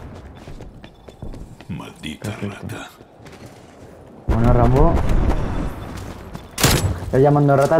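A crossbow twangs as it fires.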